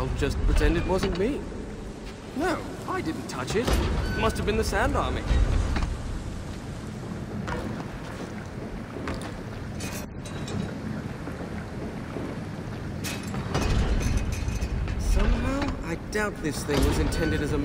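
A heavy metal mechanism rumbles and creaks as it turns.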